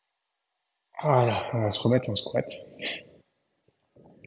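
A young man speaks calmly and clearly close by.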